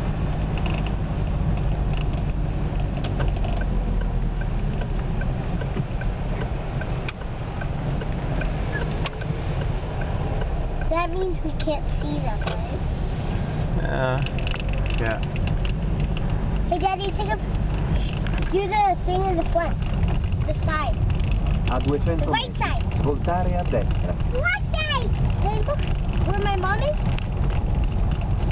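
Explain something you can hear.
A car engine rumbles low and steady, heard from inside the car.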